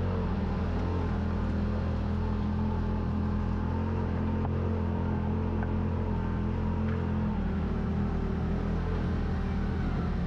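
An off-road vehicle engine hums steadily nearby.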